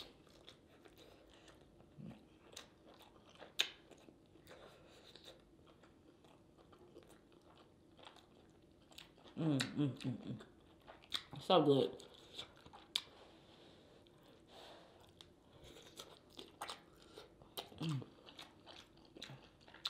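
Fingers squelch through thick sauce.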